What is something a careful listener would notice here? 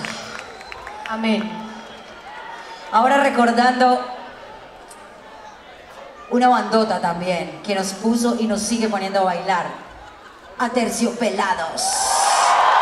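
A woman speaks with animation into a microphone over loudspeakers in a large echoing hall.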